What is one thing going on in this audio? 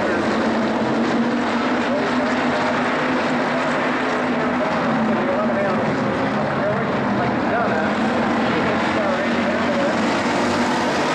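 Several race car engines roar loudly around a dirt track.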